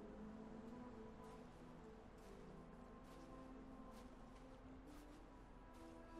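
Footsteps crunch slowly on snow.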